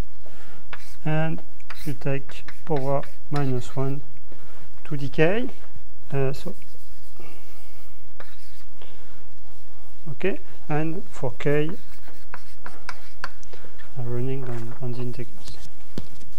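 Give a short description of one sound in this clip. A man lectures, speaking calmly with pauses.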